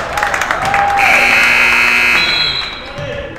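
A referee's whistle blows loudly in a short blast.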